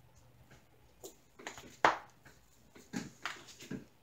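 Small plastic containers click and knock against a table.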